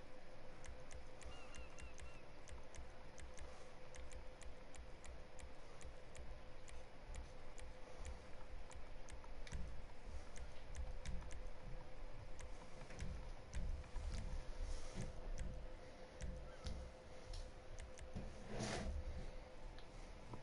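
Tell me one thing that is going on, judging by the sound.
Soft menu clicks tick repeatedly as options change.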